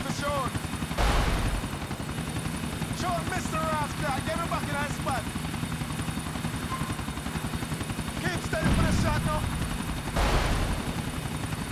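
A rocket fires with a sudden whoosh and blast.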